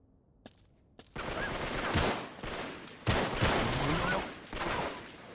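Gunshots fire in loud, rapid bursts.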